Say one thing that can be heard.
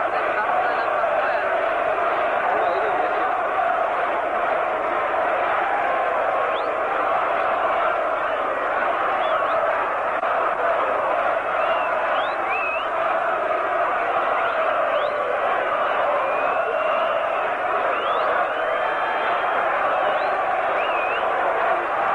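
A large outdoor crowd roars and chants loudly.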